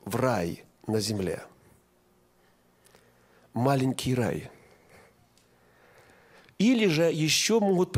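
A man speaks with emphasis through a microphone, pausing between phrases.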